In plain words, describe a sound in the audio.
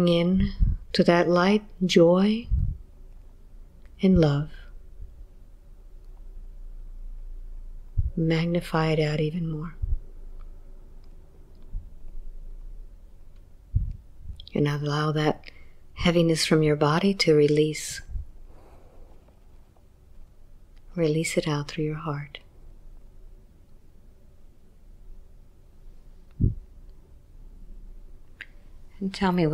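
A woman speaks softly and slowly in short phrases, close to a microphone.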